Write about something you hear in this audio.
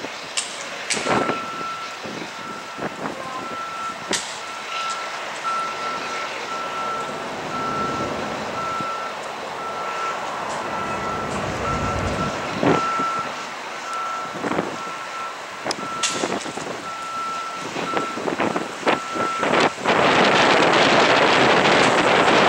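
Diesel locomotives idle in the distance.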